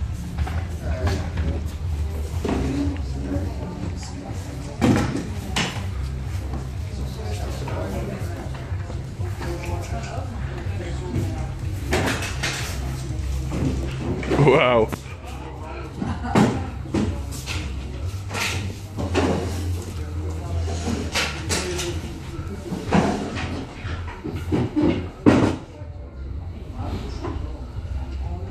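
Wooden panels knock and clunk as they are moved into place.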